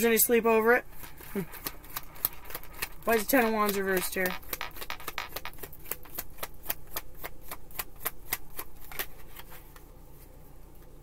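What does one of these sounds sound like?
Cards riffle and shuffle in a woman's hands.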